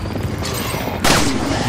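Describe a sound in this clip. A flail whooshes through the air.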